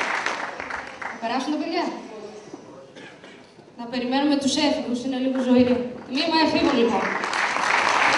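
A woman sings slowly into a microphone, heard in a large hall.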